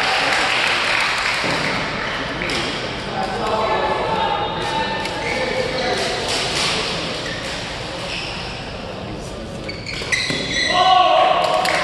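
Players' sneakers squeak sharply on the court floor.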